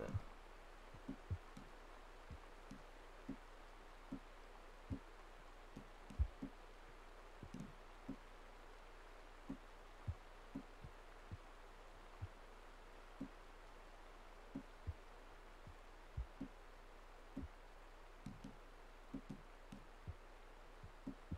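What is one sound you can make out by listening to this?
Soft low thuds tick repeatedly as a game menu selection moves.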